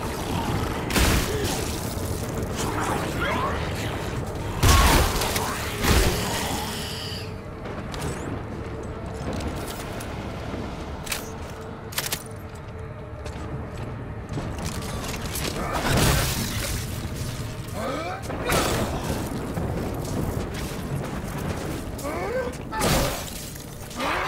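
Gunshots boom out now and then.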